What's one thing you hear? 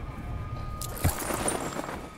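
A heavy thud sounds as someone lands on the ground.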